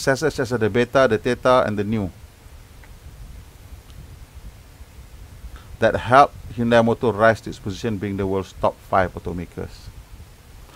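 A man speaks calmly into a close microphone, reading out in short bursts.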